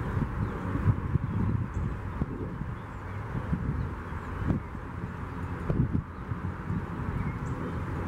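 A small bird pecks at hard seed.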